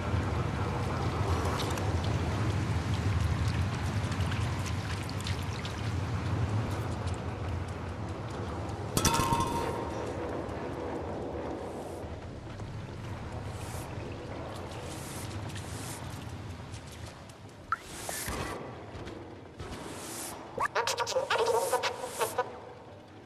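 A cat's paws pad softly on a hard floor.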